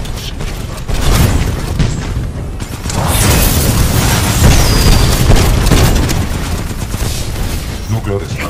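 Explosions boom loudly nearby.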